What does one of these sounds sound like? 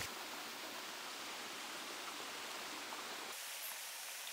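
A small waterfall splashes and rushes steadily.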